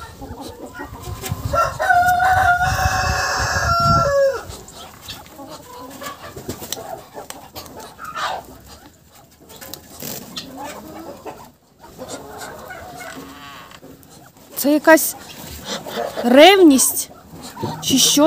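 Ducks scuffle and flap their wings close by.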